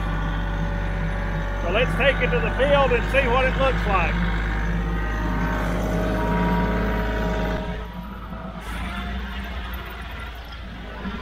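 A tractor engine drones steadily nearby.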